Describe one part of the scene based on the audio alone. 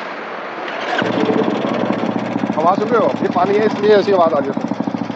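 A motorcycle engine starts and idles with a steady rapid thump.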